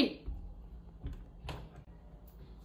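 A door handle clicks and a door opens.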